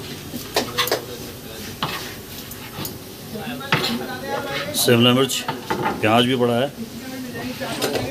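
A knife taps and chops on a plastic cutting board.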